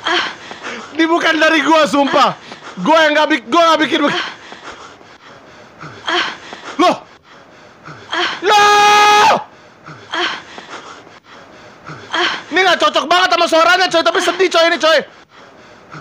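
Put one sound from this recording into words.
A young man shouts and screams excitedly into a microphone.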